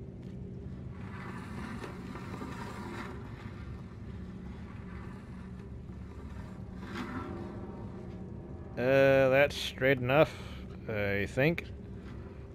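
A wooden chair scrapes across a creaking wooden floor.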